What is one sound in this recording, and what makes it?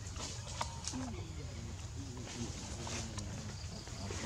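Small monkeys patter over rustling dry leaves close by.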